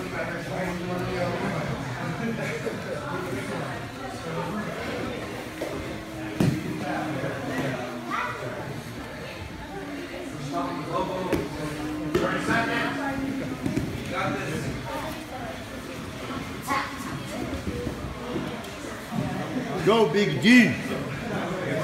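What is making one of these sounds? Bodies thump and shuffle on a padded mat.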